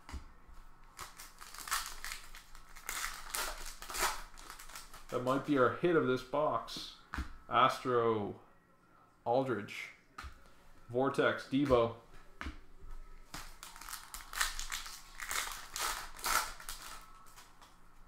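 A foil card pack crinkles and rustles as it is torn open.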